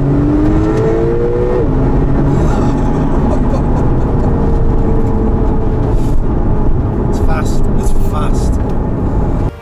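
A middle-aged man talks and laughs close by.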